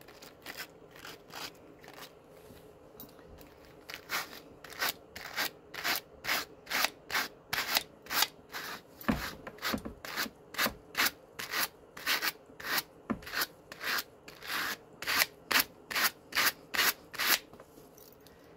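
Wire carding brushes scrape rhythmically through wool with quick brushing strokes.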